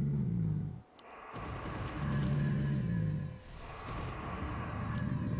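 Magic spells crackle and hiss in a video game battle.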